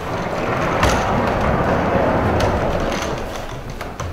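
A table scrapes and knocks on a wooden floor.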